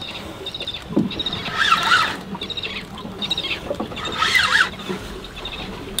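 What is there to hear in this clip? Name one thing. A fishing reel clicks as its handle is turned.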